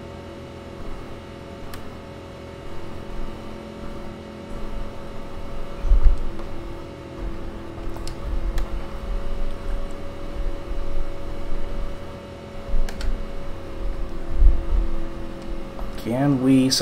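A race car engine hums steadily at low speed.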